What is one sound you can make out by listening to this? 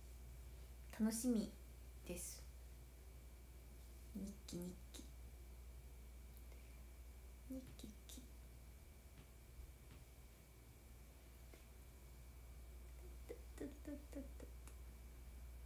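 A young woman speaks softly and casually close to a microphone, in short bursts with pauses.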